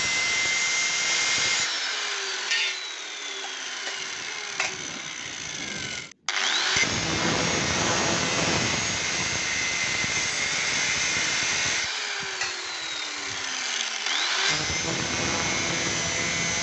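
An angle grinder whines loudly, winding down and speeding back up.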